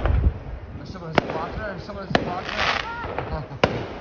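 Firework rockets whistle as they rise.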